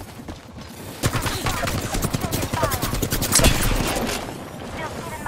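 A rifle fires rapid shots close by.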